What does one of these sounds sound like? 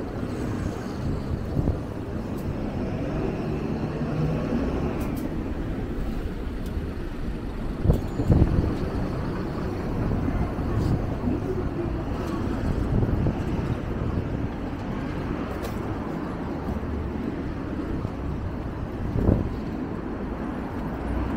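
City traffic hums steadily along a street outdoors.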